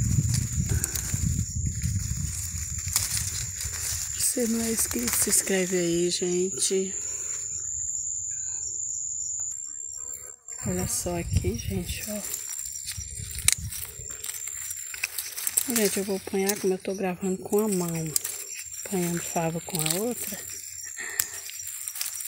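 Leaves rustle as a hand brushes and pulls at them.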